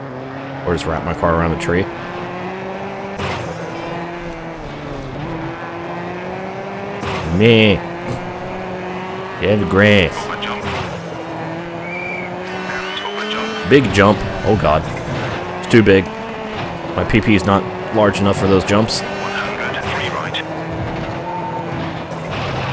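A rally car engine roars steadily, its pitch rising and falling with the gears.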